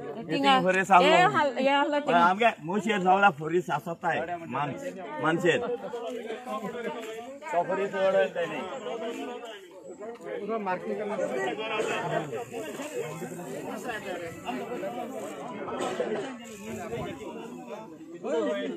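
A crowd of men and women talk over one another outdoors.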